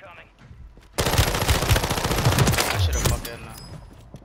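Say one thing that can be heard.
A rifle fires a rapid burst of shots nearby.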